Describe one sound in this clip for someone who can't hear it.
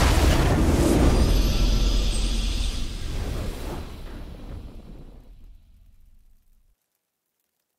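A triumphant fanfare swells and then slowly fades away.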